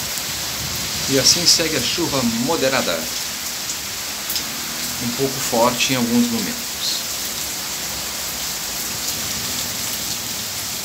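Heavy rain pours down onto pavement.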